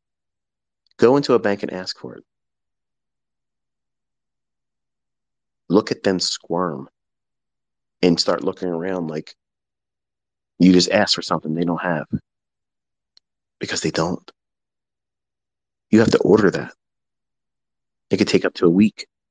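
A man speaks in short bursts into a microphone, with pauses between.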